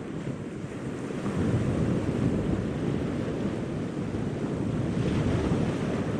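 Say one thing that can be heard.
Waves wash onto a pebble shore with a steady roar.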